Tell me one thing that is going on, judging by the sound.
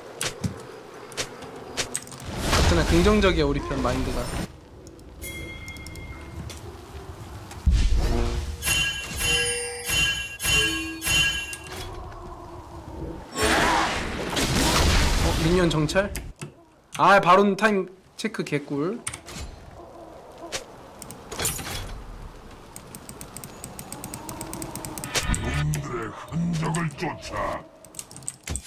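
Game sound effects chime and clash.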